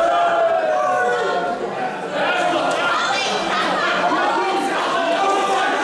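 A crowd in a large hall shouts and cheers loudly.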